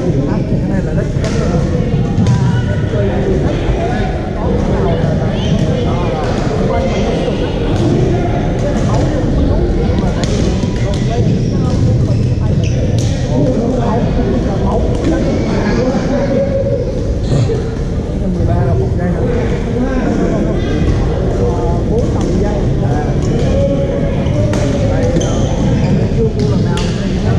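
Sneakers squeak and patter on a hard floor.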